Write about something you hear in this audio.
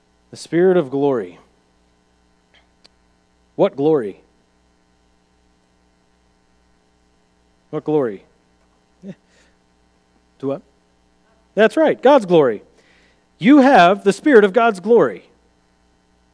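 A man speaks calmly with pauses, heard through a microphone in an echoing room.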